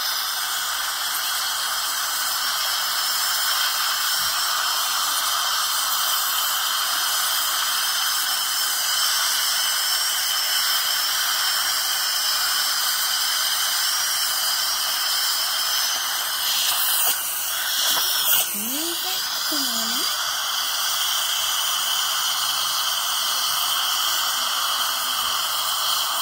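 A dental scaler whines with a high, thin buzz.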